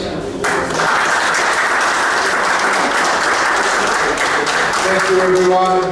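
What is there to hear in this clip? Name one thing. A crowd applauds loudly in a large echoing room.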